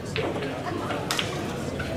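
A pool cue strikes the cue ball.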